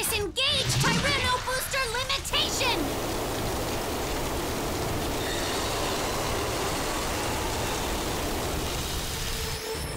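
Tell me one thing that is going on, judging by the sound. Flames roar steadily from a blast of fire.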